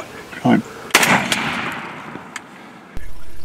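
A gunshot cracks loudly and echoes away.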